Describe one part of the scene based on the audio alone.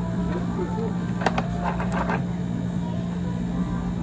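A drink pours over ice into a plastic cup.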